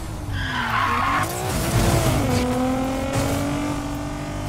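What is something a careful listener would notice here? A car crashes through roadside debris with a loud scraping burst.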